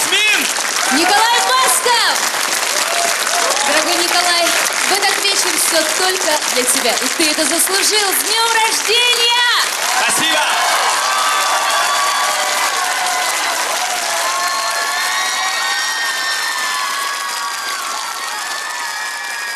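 An audience claps and cheers in a large hall.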